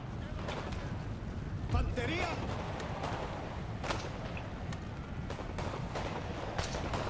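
Musket shots crack in scattered bursts.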